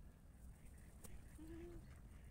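A duck flaps its wings and splashes on the water.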